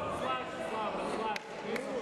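A young man shouts nearby.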